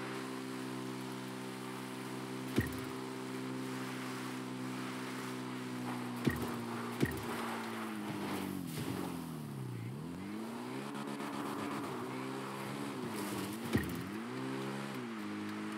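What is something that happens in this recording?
A motorcycle engine hums steadily, its pitch rising and falling as it speeds up and slows down.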